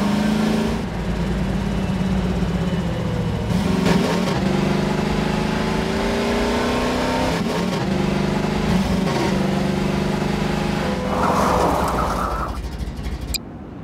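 A buggy engine drones and revs up and down.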